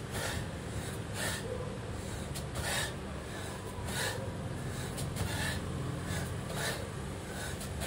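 A man breathes out hard in rhythm with his movements.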